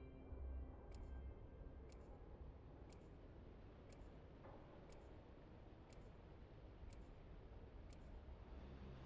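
A countdown timer ticks steadily, once a second.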